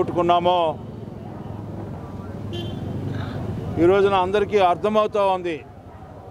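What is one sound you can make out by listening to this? A middle-aged man speaks forcefully into close microphones.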